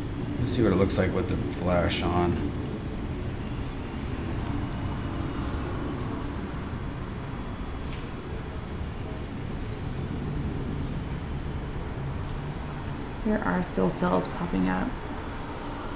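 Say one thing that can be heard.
A man speaks briefly and casually.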